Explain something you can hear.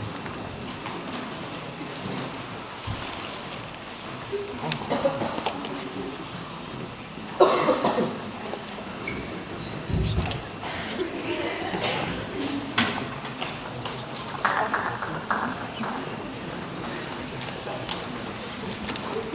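A large crowd of young people chatters and murmurs in a big echoing hall.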